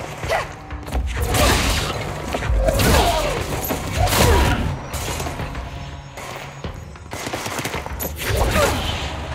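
Objects smash and crash heavily with deep booms.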